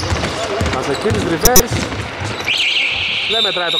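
A basketball bounces on a hard court in an echoing hall.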